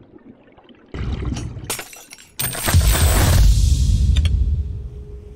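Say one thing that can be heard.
Water splashes as a diver breaks the surface.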